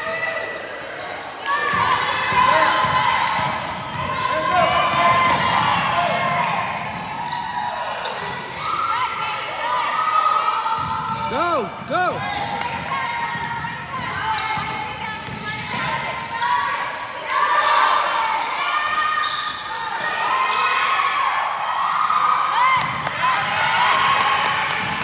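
Girls on a team shout and call out to each other in a large echoing gym.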